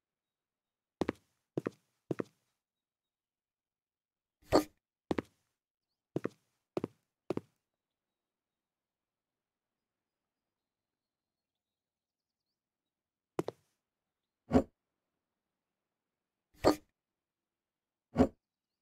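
Short knocks sound as pieces of furniture are set down.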